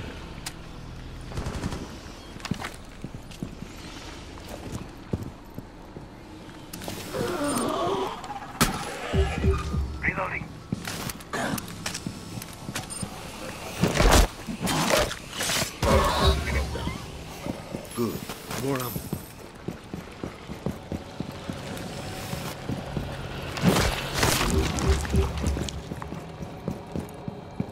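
Footsteps walk steadily on hard ground.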